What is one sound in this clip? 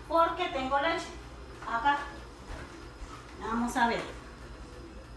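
A woman speaks with animation, close to the microphone.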